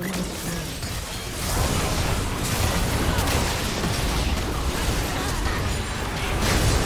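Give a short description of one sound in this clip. Spell effects and blasts crackle and boom in a game battle.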